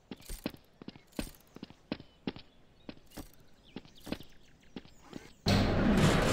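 A gun fires a series of sharp shots.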